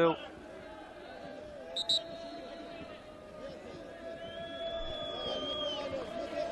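A large stadium crowd chants and sings in the distance.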